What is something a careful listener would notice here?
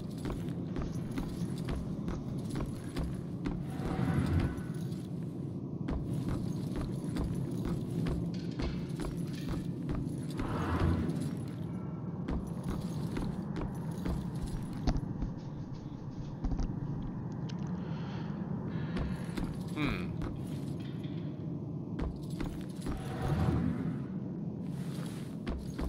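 Footsteps thud steadily on wooden floorboards.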